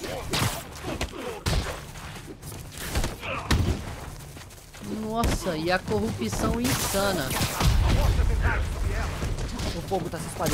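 Punches land with heavy thuds in a fight.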